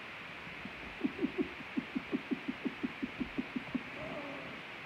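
A young man laughs in short bursts close by.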